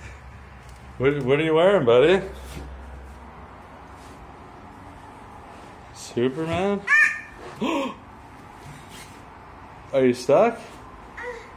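A young child squeals and laughs playfully nearby.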